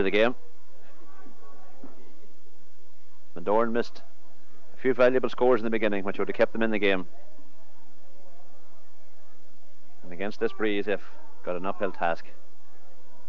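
A man speaks animatedly close by.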